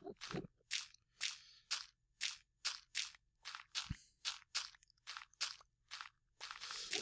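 Blocks of stone and gravel crunch in quick, regular taps as they are dug out.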